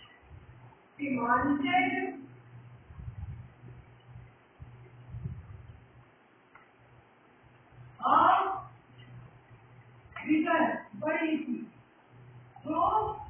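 A woman speaks slowly in short phrases, as if dictating.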